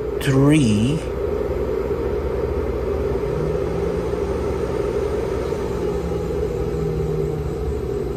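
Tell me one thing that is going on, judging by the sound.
An electrical device hums steadily.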